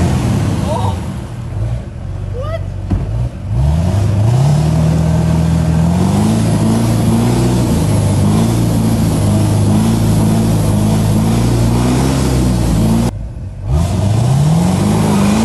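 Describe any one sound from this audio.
Spinning tyres churn and splash through muddy water.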